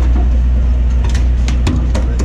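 A landing net knocks against a deck.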